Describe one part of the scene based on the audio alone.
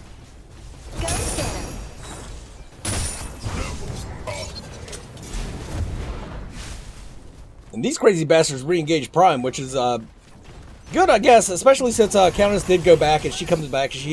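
Blades whoosh and strike in a fast fight.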